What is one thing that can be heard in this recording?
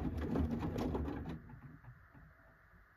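A washing machine drum slows and comes to a stop.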